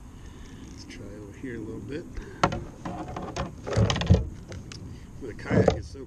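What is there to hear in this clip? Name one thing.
A fishing reel clicks and whirs as a man winds it.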